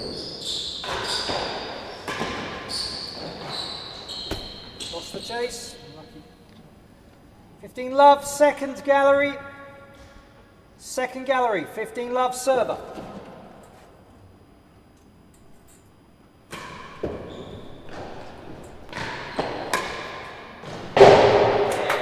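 A ball smacks off a racket and bounces off walls in an echoing hall.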